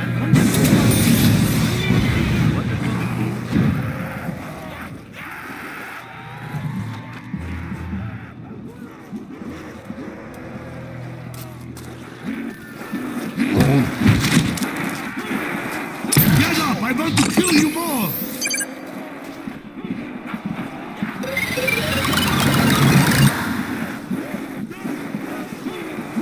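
Gunfire from a video game crackles in bursts.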